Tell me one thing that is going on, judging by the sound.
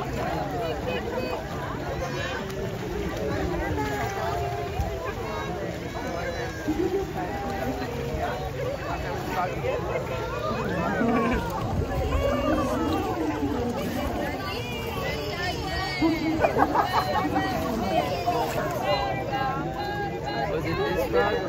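Water splashes and laps gently.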